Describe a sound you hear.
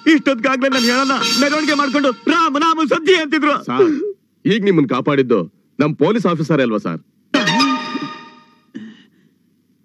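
A man pleads tearfully and with great emotion, close by.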